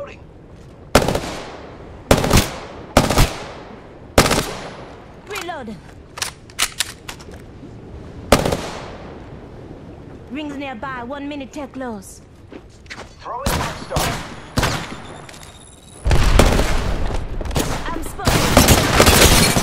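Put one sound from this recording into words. A gun fires loud single shots and bursts.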